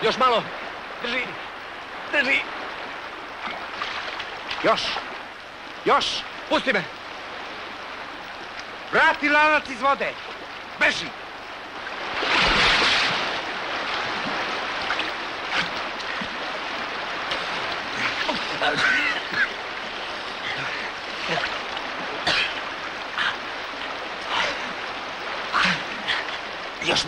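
Water splashes and churns as people wade through a river.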